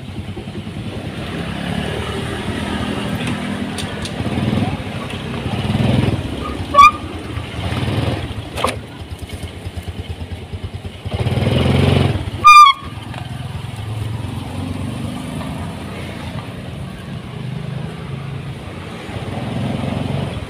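A motorcycle engine idles and revs up and down close by.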